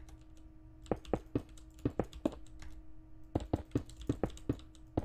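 Stone blocks knock into place with quick, dull thuds.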